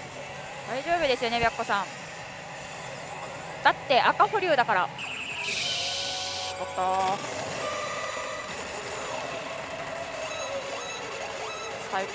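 A gaming machine plays electronic music and sound effects.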